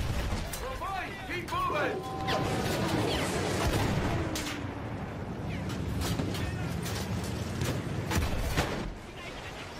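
Explosions boom nearby.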